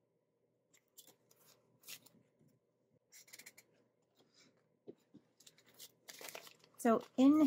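Paper money rustles and crinkles as it is handled.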